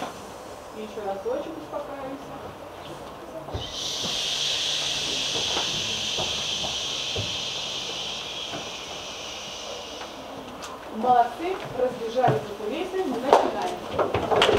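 Children's voices speak and call out nearby.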